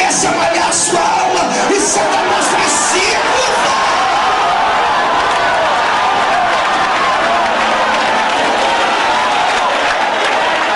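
A man speaks forcefully through a microphone and loudspeakers.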